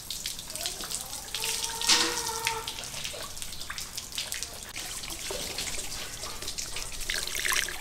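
Hands squelch and slap against a wet fish.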